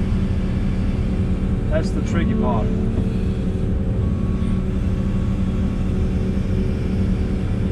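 Soil and stones scrape against an excavator bucket.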